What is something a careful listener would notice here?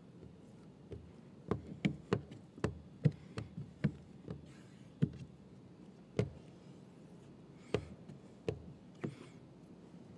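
A squeegee scrapes and taps against a glass window.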